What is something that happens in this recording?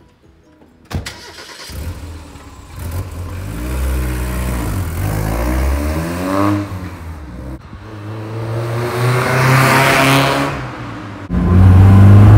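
A car engine starts and revs up and down in bursts.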